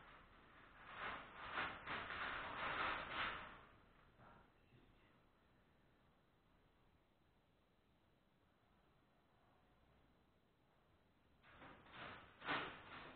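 Paper rustles and scrapes on a table.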